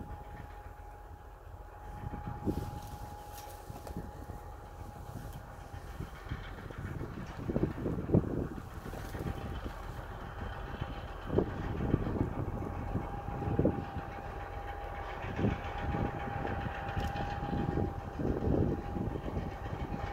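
A diesel locomotive engine idles far off.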